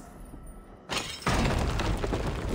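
A heavy thud sounds as a body drops onto a hard floor.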